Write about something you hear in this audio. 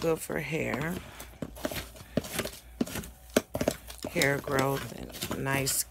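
A plastic container knocks and clicks against a table.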